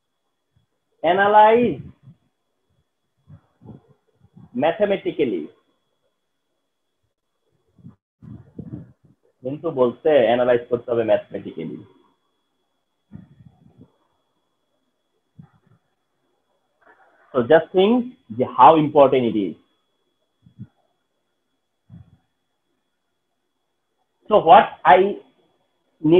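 A man speaks calmly and slowly into a close microphone, in short phrases with pauses.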